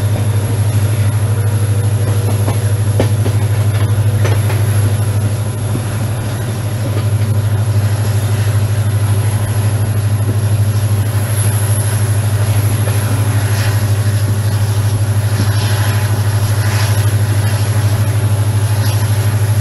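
A diesel locomotive engine drones loudly and steadily nearby.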